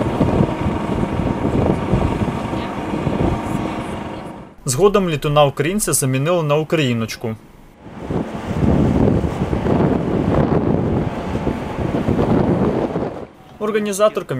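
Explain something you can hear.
Wind gusts across a microphone outdoors.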